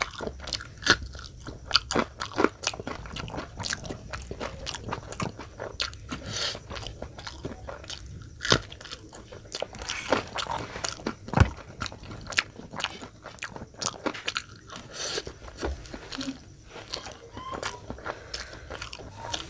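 A man crunches a green chili.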